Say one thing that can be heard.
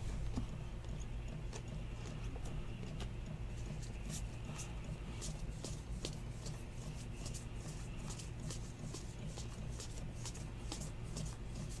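Trading cards slide and flick against each other as they are shuffled.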